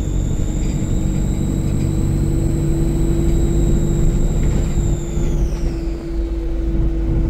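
A high motor whine glides down in pitch as the bus eases off.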